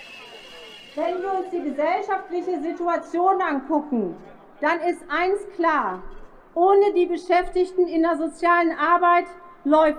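A man speaks with animation through a loudspeaker.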